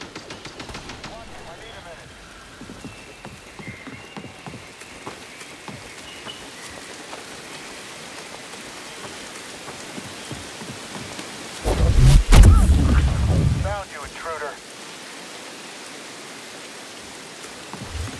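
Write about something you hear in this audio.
Footsteps tread on wooden planks and damp ground.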